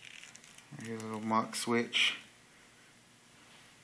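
A small metal part clicks as it is turned by hand.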